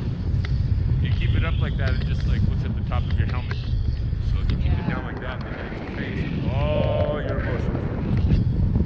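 A man speaks loudly over the wind, close by.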